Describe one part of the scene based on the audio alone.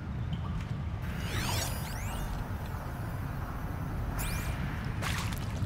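A shimmering electronic scan sweeps with rising and falling tones.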